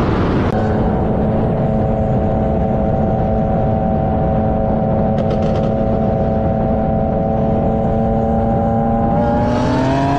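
Wind rushes loudly past a fast-moving car.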